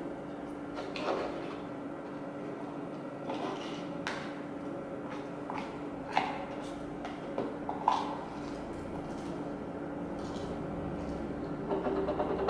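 A girl stirs slime, scraping and tapping.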